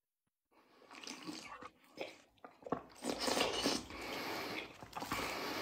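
A man slurps a drink from a bowl.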